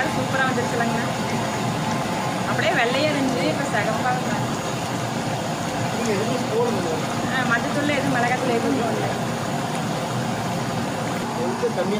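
A thick stew bubbles softly in a pot.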